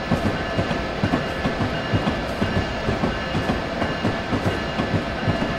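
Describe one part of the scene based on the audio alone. A train hums steadily as it runs along the rails.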